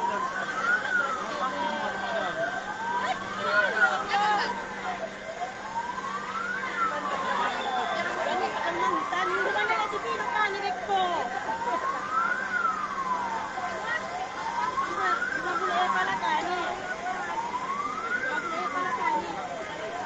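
A crowd of people shouts and chatters outdoors.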